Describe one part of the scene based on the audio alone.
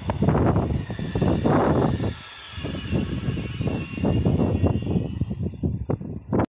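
A train rolls in with a rising electric whine.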